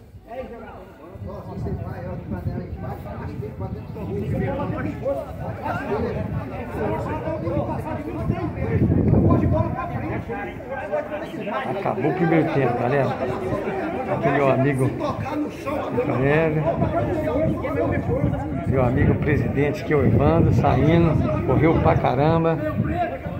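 Men talk and call out loudly close by, outdoors.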